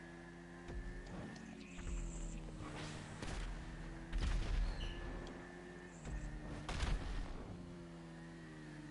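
A motorcycle engine hums steadily and revs up and down.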